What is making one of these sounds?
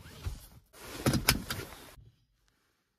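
A seat belt buckle clicks into its latch.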